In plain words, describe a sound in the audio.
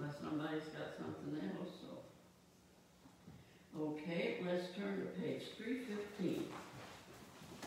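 A woman speaks calmly in a small echoing room, some distance away.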